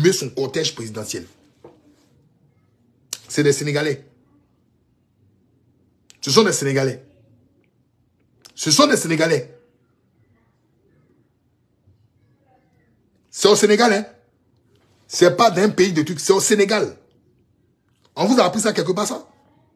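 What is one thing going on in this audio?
A man speaks with animation close to a phone microphone, in short bursts with pauses.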